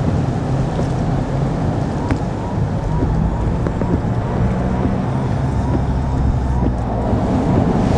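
Windscreen wipers swish back and forth.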